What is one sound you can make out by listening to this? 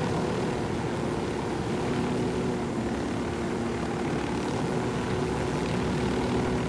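A helicopter's rotor thumps steadily with a whining engine close by.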